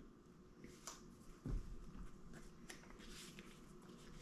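Paper crinkles softly in a man's hands.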